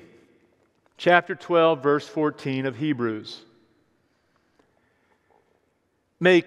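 A man reads aloud calmly through a microphone in an echoing hall.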